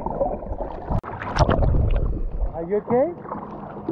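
Water sloshes and churns at the surface.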